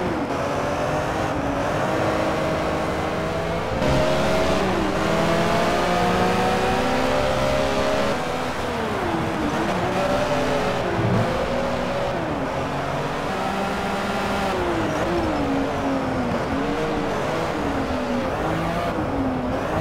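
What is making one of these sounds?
Racing car engines roar loudly, rising and falling in pitch as they shift gears.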